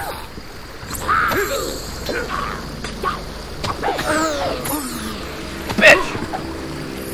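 A sword slashes and strikes with metallic hits.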